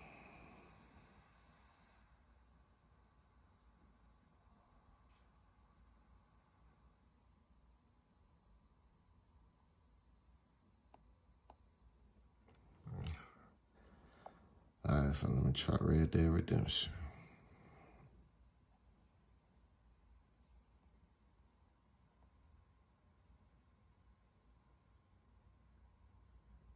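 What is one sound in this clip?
Fingertips tap lightly on a touchscreen.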